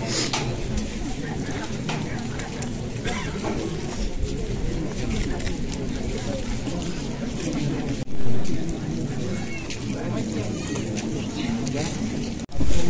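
A crowd of people murmurs and talks outdoors.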